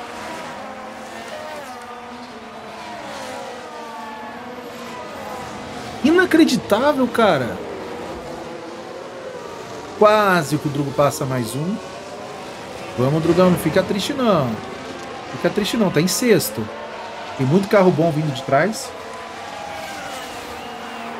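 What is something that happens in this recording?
Racing car engines whine past.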